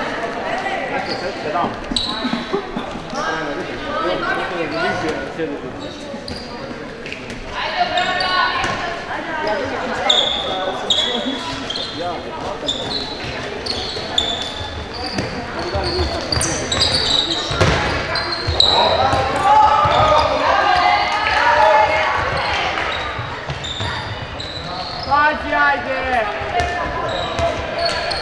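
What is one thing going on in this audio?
Young women shout and call out to each other across a large echoing hall.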